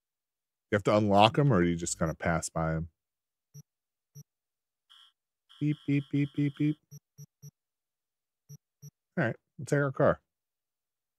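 A man talks casually over an online call, close to a microphone.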